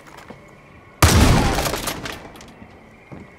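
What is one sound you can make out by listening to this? A gunshot bangs loudly and echoes.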